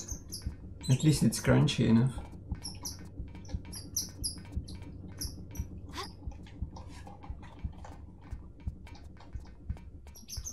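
Footsteps run quickly across a metal floor.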